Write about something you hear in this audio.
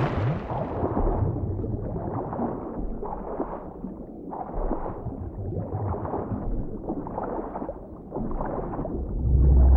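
Arms stroke through water in a steady, even rhythm.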